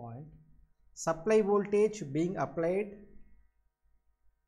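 A man speaks calmly into a microphone, like a lecturer explaining.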